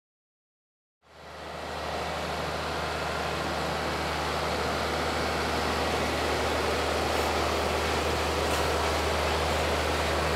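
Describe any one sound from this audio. A tractor engine drones steadily close by.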